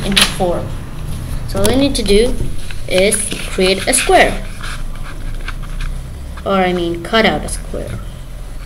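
A young boy speaks close to the microphone.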